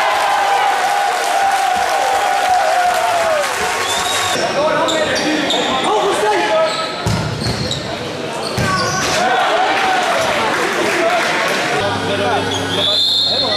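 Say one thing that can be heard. Men on the sidelines shout loudly nearby.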